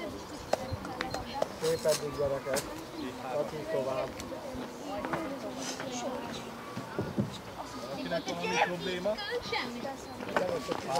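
Young girls call out to each other across an open field.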